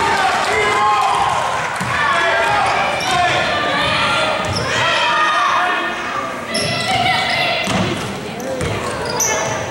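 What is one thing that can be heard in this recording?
A basketball thumps as it bounces on the floor.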